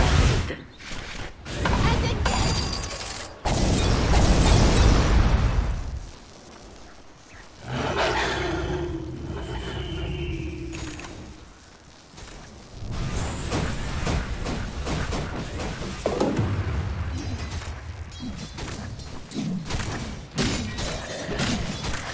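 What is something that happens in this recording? Game sound effects of spells bursting and weapons clashing ring out in quick succession.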